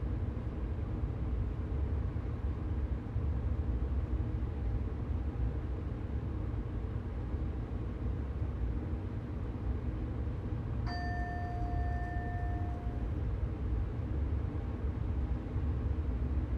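An electric train rumbles steadily along the tracks.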